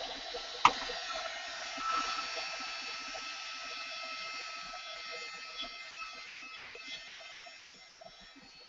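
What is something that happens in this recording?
A heat tool whirs steadily and then fades.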